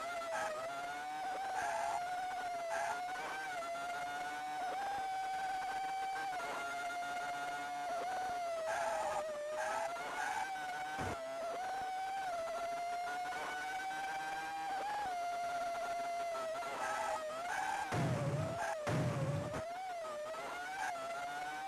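A video game race car engine buzzes steadily, its pitch rising and falling with speed.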